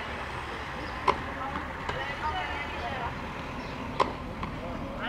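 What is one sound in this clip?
A tennis ball bounces on clay.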